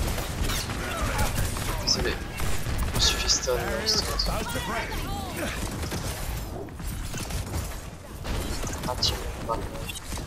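Game explosions and impacts thud throughout.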